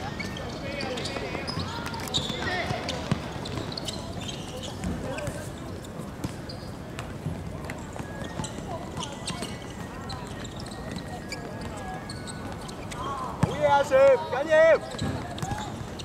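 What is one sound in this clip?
Sneakers squeak on the hard court.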